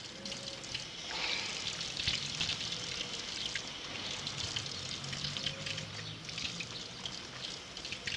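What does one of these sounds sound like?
Water runs and splashes from an outdoor tap.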